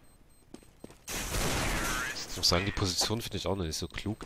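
Rifle gunfire rattles in short bursts.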